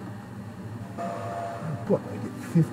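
A short electronic game jingle beeps.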